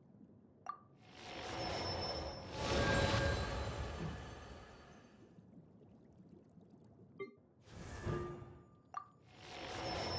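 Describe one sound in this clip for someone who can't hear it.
A shimmering whoosh swells and fades.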